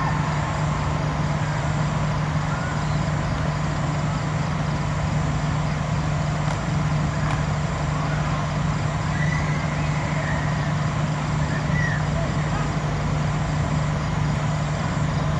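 Men talk and call out in the distance outdoors.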